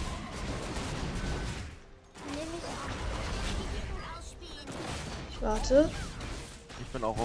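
Magic blasts burst and crackle in a fantasy battle game.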